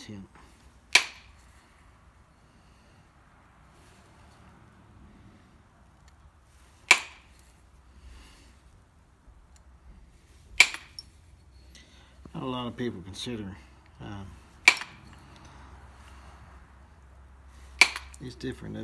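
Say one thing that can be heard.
An antler hammer strikes stone with sharp, ringing clicks now and then.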